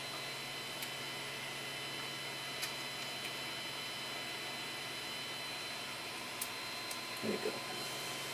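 Small plastic parts click and tap as hands handle them.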